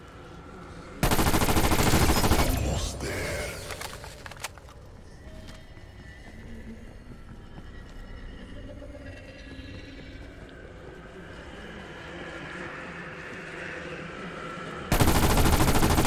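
A rifle fires rapid loud bursts of shots.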